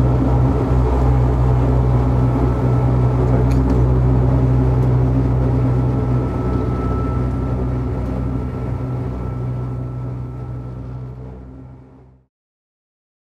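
An old electric rack railcar's traction motors hum and whine as it climbs, then wind down as it slows to a stop.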